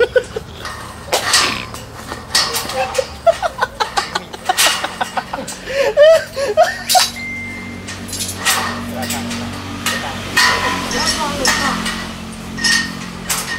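Metal frames clank and knock.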